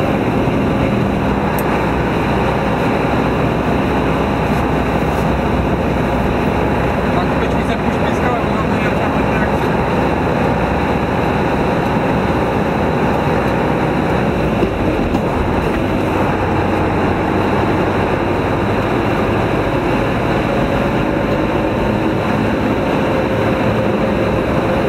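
Tyres roll on asphalt with a steady hum.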